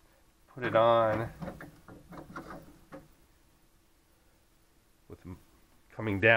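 A plastic spool clicks into place on a holder.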